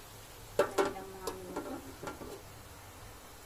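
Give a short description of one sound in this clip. A metal lid clatters and rings as it is set on a metal pan.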